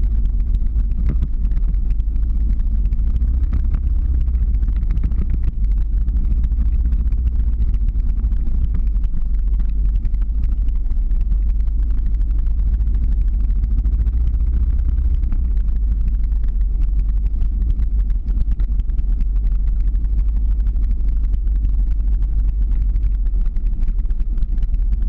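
Wind rushes loudly past, heard while moving fast outdoors.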